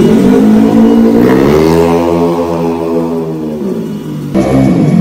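A motor scooter engine hums as the scooter pulls away and fades into the distance.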